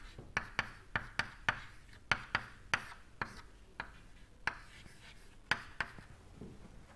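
Chalk taps and scrapes sharply on a blackboard.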